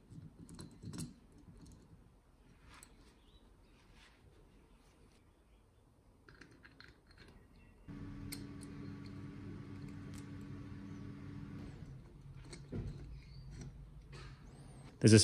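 Small metal parts click and tap against each other.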